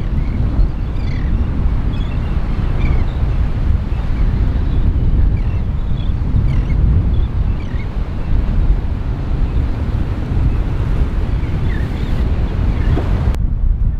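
Seagulls call overhead.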